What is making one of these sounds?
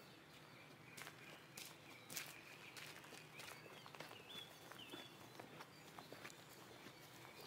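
Footsteps crunch on dry leaves.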